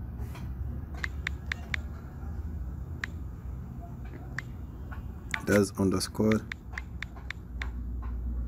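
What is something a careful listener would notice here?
Phone keyboard keys click as letters are typed.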